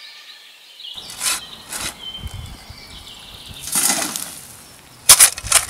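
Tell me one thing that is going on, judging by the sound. A shovel scrapes and digs into dry earth.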